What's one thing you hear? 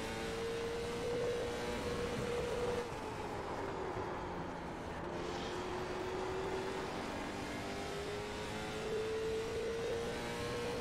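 A race car engine roars steadily, its pitch dipping and rising as the car slows through a turn and speeds up again.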